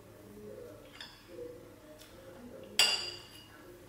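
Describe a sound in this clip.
A knife and fork clink against a ceramic plate.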